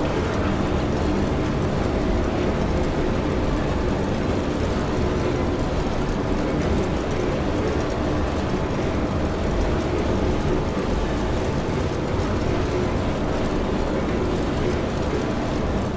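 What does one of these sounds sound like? A large elevator rumbles and hums steadily as it moves.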